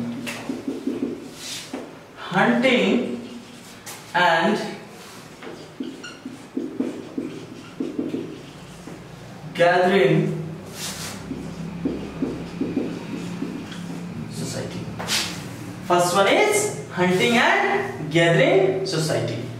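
A young man speaks calmly nearby, explaining.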